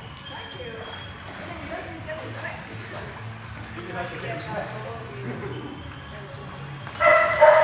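Water sloshes and splashes gently.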